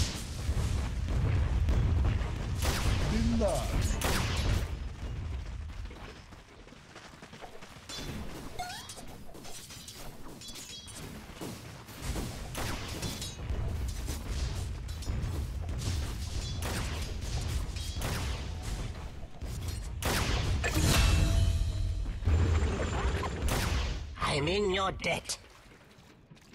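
Sword clashes and spell blasts crackle in rapid bursts of fighting.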